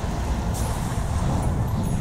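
A fireball whooshes.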